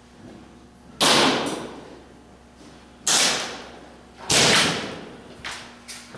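Pistol shots crack loudly, one at a time, echoing in a large hall.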